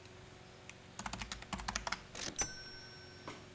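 Buttons on a card terminal click rapidly.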